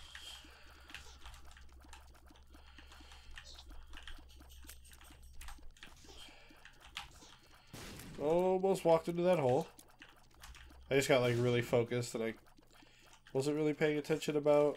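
Small game shots pop and splat in quick bursts.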